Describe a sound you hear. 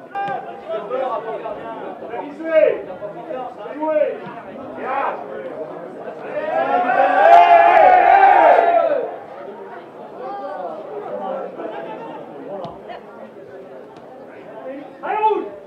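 Young men shout to each other across an open field outdoors.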